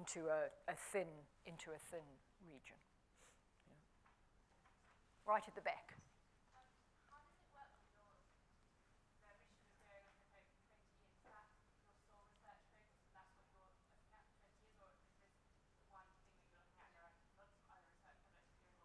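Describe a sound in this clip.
A middle-aged woman speaks with animation, heard from a little distance.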